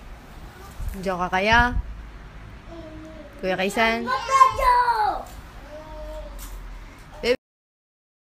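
A young child squeals and laughs nearby.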